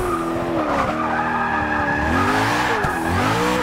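Tyres squeal as a car slides through a corner.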